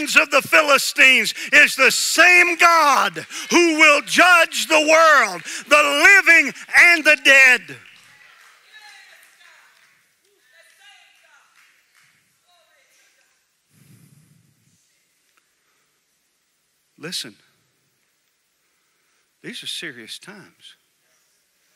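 A middle-aged man preaches with animation through a headset microphone in a large echoing hall.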